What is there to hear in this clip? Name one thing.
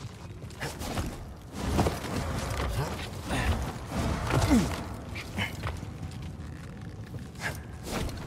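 Hands scrape and grip rough stone while climbing.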